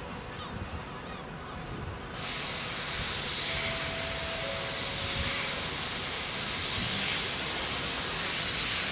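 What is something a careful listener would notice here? A steam locomotive chuffs steadily as it approaches.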